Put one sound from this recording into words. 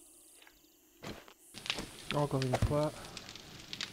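A wooden door creaks.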